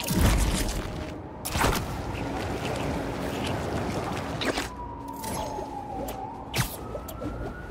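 Sharp whooshes swish by now and then.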